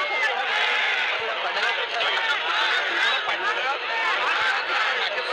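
A large crowd of men and women wail and call out together.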